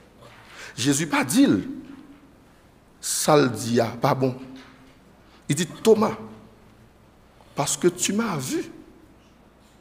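A man preaches into a microphone with animation, in short bursts with pauses, in a reverberant hall.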